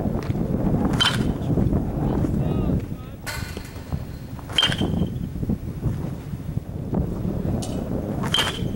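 A metal bat cracks sharply against a baseball, with a brief ringing ping.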